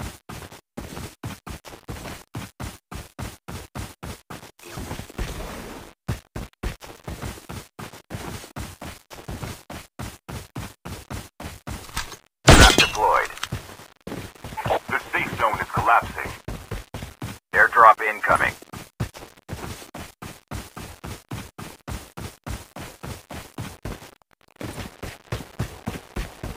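Footsteps run quickly and steadily over grass and dirt.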